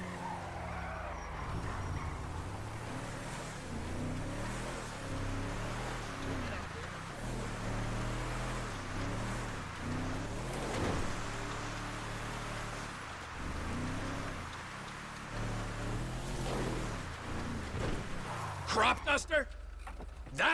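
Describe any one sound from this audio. A pickup truck engine hums and revs while driving.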